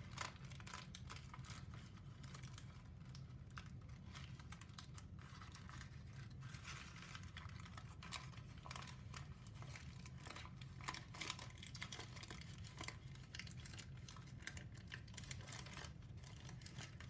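Paper crinkles and rustles as it is folded and handled close by.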